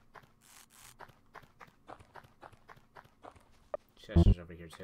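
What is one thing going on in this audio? Quick footsteps tap along in a steady rhythm.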